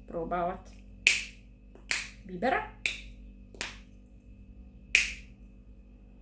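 A plastic cap clicks open and shut several times.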